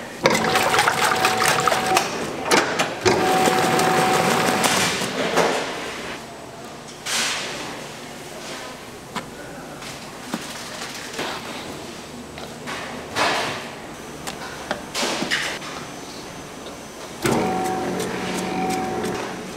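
A stand mixer whirs loudly as its whisk beats in a metal bowl.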